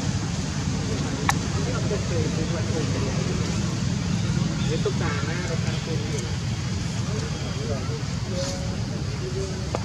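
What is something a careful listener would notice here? Young monkeys squeal and shriek close by.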